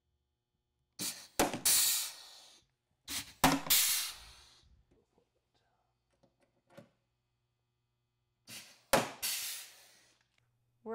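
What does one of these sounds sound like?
A rivet gun fires with sharp, hissing snaps.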